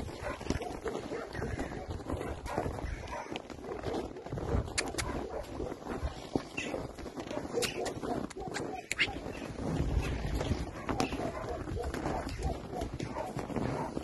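Hooves crunch and shuffle on packed snow close by.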